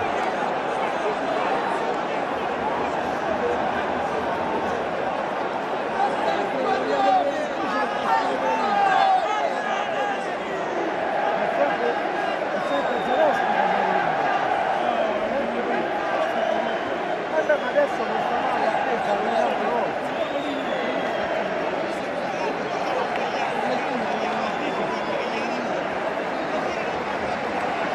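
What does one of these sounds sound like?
A large stadium crowd roars and chants steadily in a vast open space.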